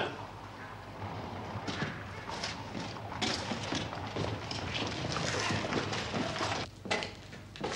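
Boots tread on a stone floor.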